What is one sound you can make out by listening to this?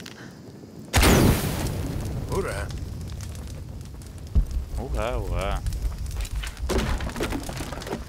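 A fire flares up with a sudden whoosh and crackles.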